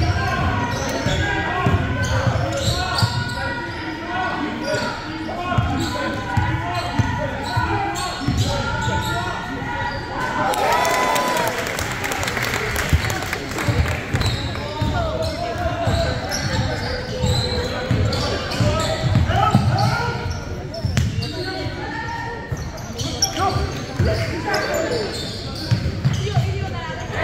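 Young men shout and call out to each other across the gym.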